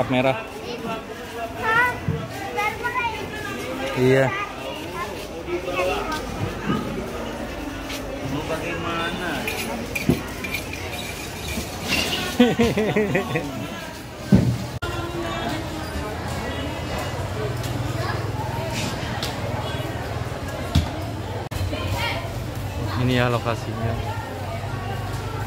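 A crowd of women and men chatter all around.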